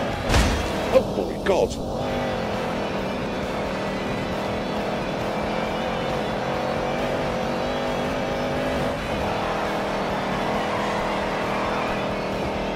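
Tyres screech as a car drifts.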